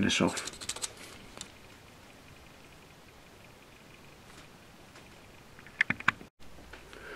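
Small plastic parts click and rattle in a person's hands.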